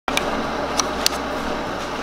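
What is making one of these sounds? A plastic pod clicks into a coffee maker.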